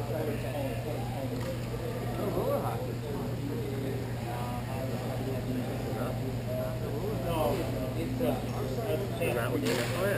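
Skate wheels roll and scrape on the floor nearby.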